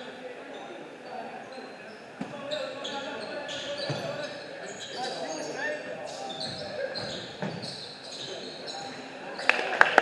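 Young men call out to each other across an echoing gym.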